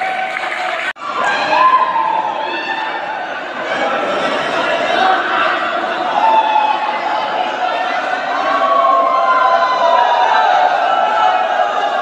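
A crowd of young people chants and sings together.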